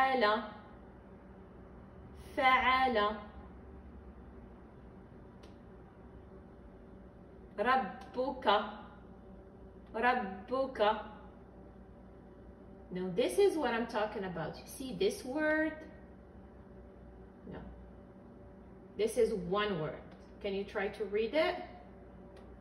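A woman reads out slowly and clearly in short phrases, close by.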